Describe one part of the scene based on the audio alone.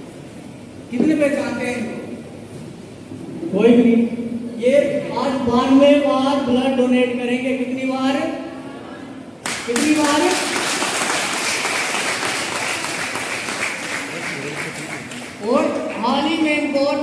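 A group of women sing together loudly nearby.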